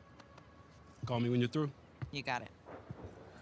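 A young woman answers warmly.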